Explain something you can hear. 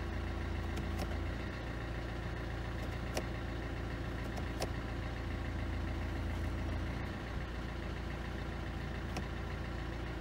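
A gear selector clicks a few times.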